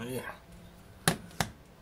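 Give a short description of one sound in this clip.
Hands knock against the microphone.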